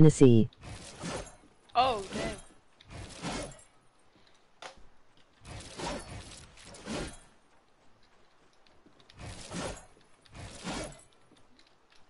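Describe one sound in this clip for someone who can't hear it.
Building pieces snap into place with short, heavy thuds again and again.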